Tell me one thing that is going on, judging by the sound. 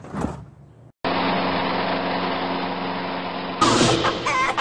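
A lawn mower engine runs loudly and steadily.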